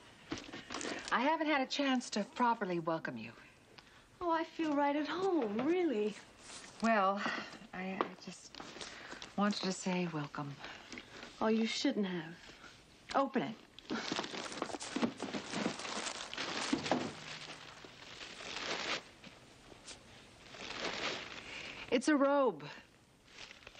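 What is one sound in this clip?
A woman speaks warmly.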